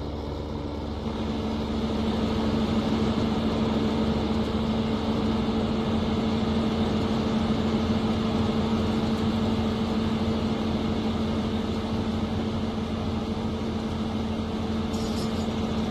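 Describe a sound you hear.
A combine harvester engine hums loudly nearby.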